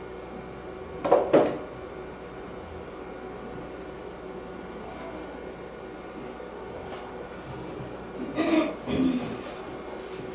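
A young woman speaks briefly and quietly into a microphone.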